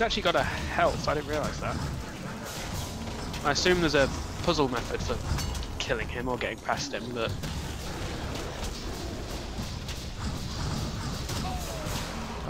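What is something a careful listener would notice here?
Weapons clash and thud in a fight.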